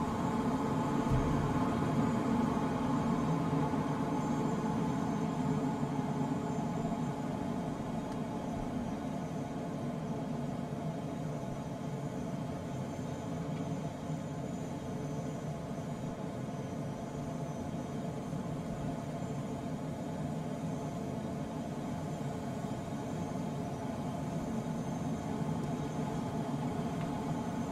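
Air rushes steadily past a glider's canopy in flight.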